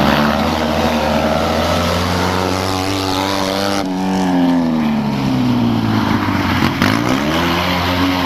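A small car engine revs loudly, rising and falling in pitch.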